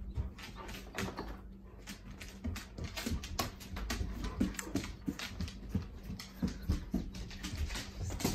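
A dog's claws click and patter on a hard floor.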